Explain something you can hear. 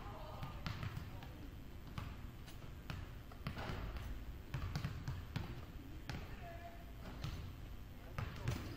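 Basketballs bounce on a wooden court in a large echoing gym.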